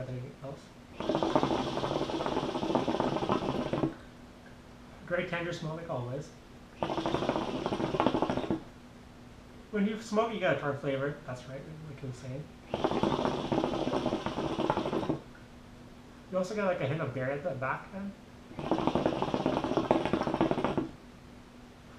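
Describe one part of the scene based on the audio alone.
Water bubbles loudly in a hookah in repeated bursts.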